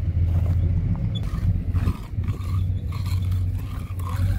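A trowel scrapes and smooths wet concrete.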